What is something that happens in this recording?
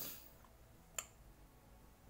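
A computer mouse clicks once.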